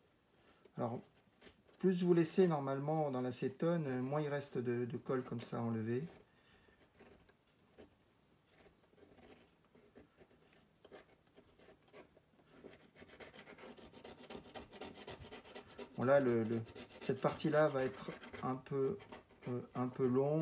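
A small metal tool scrapes lightly against a metal part.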